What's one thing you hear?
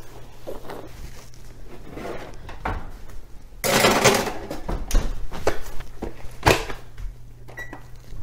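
An oven door opens and shuts with a thud.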